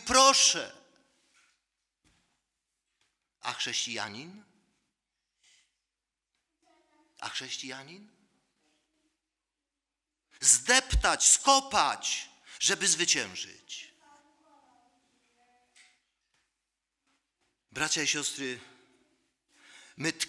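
A middle-aged man preaches into a microphone with emphasis, in short phrases separated by pauses.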